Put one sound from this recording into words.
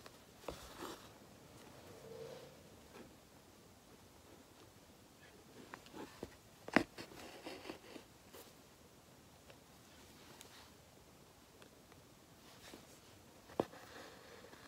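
Fingers tap and brush against an embroidery hoop.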